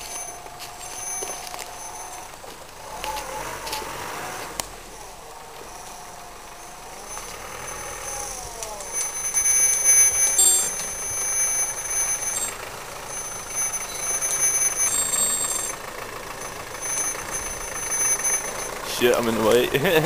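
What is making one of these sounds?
An off-road vehicle's engine labours and revs as it climbs a muddy slope outdoors.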